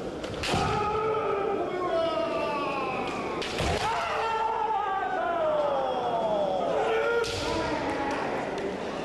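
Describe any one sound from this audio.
Young men shout long, drawn-out battle cries that fall in pitch, echoing in a large hall.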